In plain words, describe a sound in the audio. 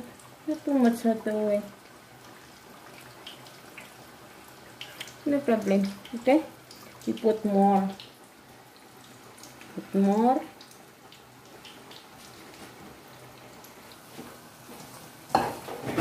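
Dough balls sizzle and bubble in hot oil.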